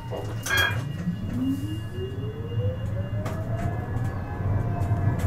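A tram's electric motor whines, rising in pitch as the tram pulls away.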